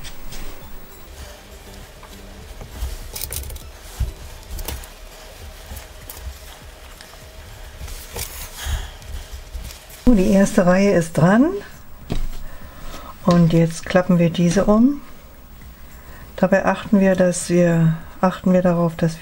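Fabric rustles softly as hands fold and shift it.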